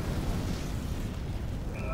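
A burst of fire roars loudly.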